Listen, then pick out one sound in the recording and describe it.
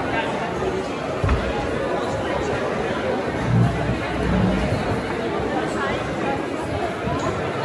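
A crowd of men and women chatter loudly in a large echoing hall.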